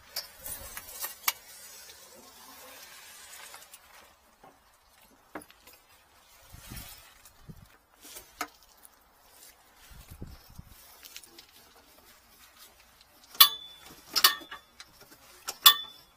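Metal hose and fittings clink and rattle.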